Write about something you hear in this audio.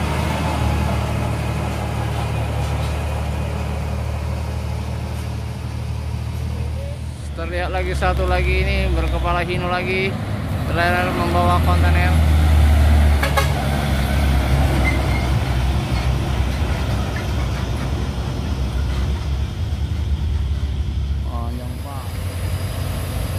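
A heavy truck engine rumbles loudly as the truck passes close by and drives away.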